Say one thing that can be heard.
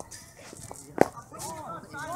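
A cricket bat cracks against a ball some distance away.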